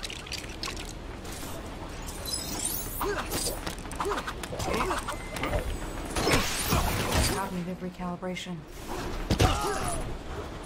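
Magic energy blasts crackle and zap in quick bursts.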